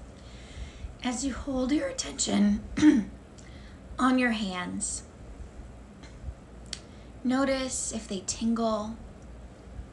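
A woman speaks calmly and softly into a close microphone.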